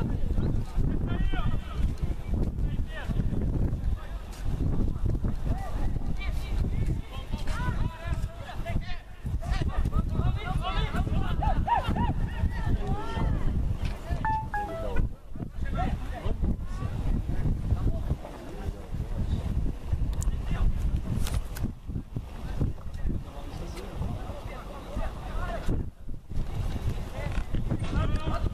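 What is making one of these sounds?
Young men shout across a sports field in the distance.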